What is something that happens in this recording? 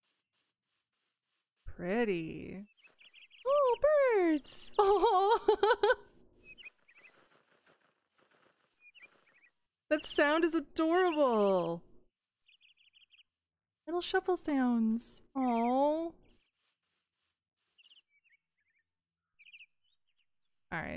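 Footsteps crunch softly through grass.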